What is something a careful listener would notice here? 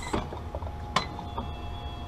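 A plastic lid clicks open.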